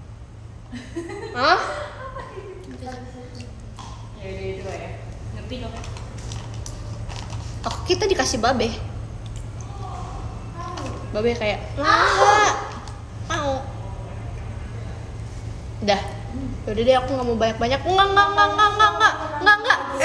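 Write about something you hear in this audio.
A young woman talks casually, close by.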